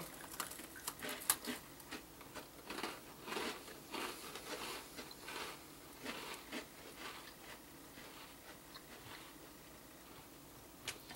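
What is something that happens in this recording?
People crunch on crisp snacks close by.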